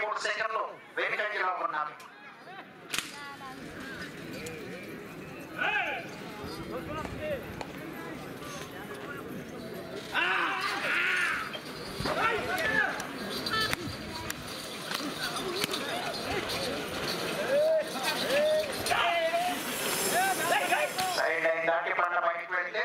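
Men shout loudly and urgently, close by and outdoors.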